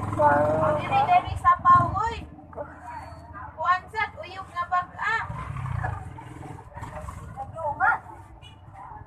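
A young girl talks and giggles playfully close to the microphone.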